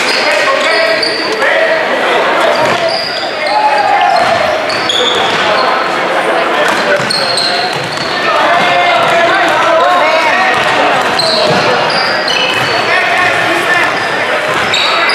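Spectators and players call out and talk in a large echoing hall.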